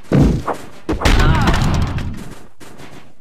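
A wooden barrel bursts with a loud crashing blast.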